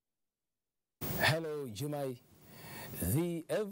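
A man speaks with animation over a remote link.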